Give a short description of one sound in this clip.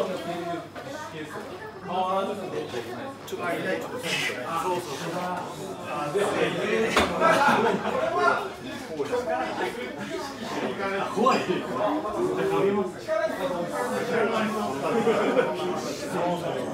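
A young man talks close by.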